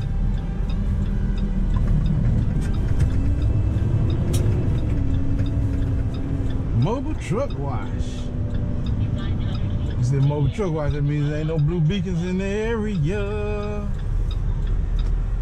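A truck engine rumbles steadily from inside the cab as it drives slowly.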